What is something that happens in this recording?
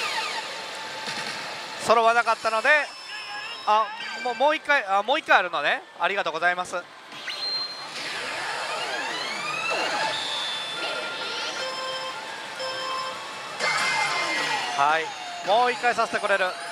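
A slot machine plays electronic music and sound effects.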